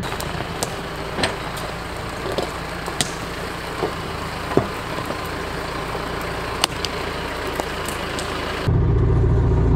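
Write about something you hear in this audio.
Twigs crack under the tyres of a forestry trailer.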